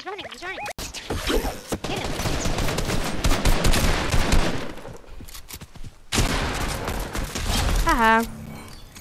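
Rapid gunshots crackle in a video game.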